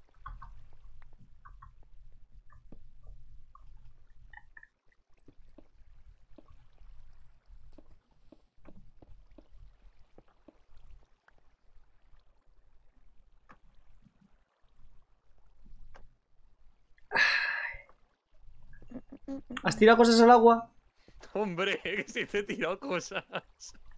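Footsteps tap softly on stone.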